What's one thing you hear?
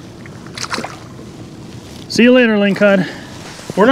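Water laps and splashes gently nearby.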